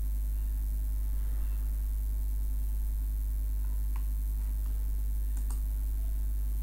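Mouse buttons click.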